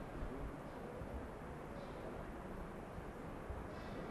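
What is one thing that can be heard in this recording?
A young woman speaks quietly into a microphone, heard through a loudspeaker.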